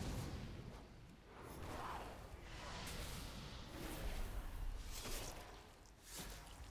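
Spells crackle and explode in a game battle.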